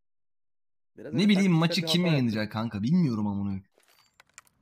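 A young man speaks loudly and with animation into a headset microphone.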